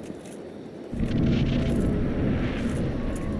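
A deep rumbling roar swells suddenly and loudly.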